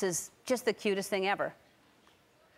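A middle-aged woman speaks into a microphone with animation.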